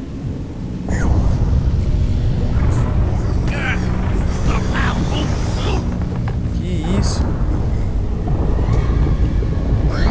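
A creature roars loudly.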